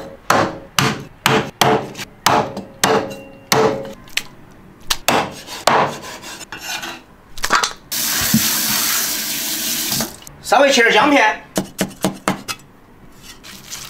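A cleaver chops on a wooden board with sharp, quick knocks.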